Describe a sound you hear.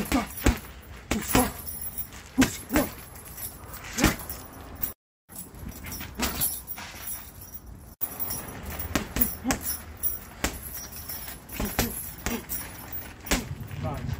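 Gloved fists thump against a heavy punching bag.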